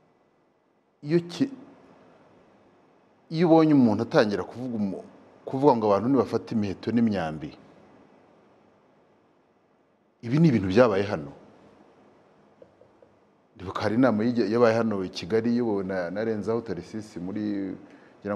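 A middle-aged man speaks with animation into a close microphone, in bursts with pauses.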